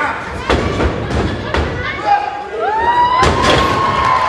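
A wrestler slams onto a ring mat with a heavy thud.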